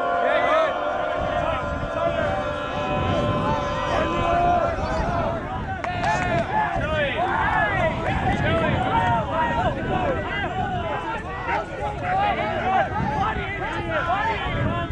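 A crowd of young men and women shouts and cheers outdoors.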